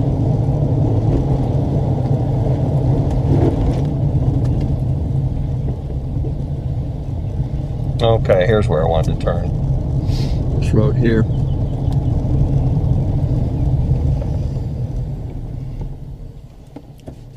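A car engine rumbles low and steady while driving along a road.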